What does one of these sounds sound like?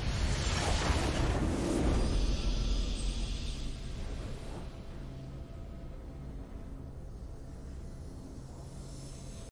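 A triumphant fanfare plays.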